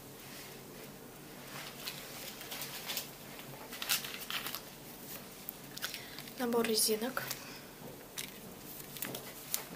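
Cardboard packaging rustles and taps as it is handled.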